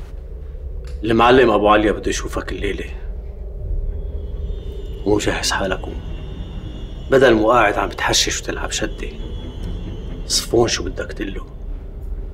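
A middle-aged man speaks slowly and gravely, close by.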